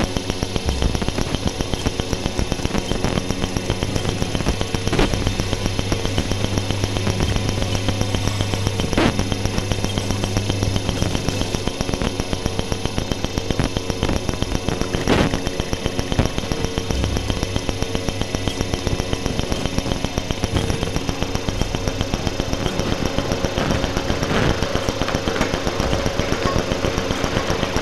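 A low electronic drone hums beneath the pulse.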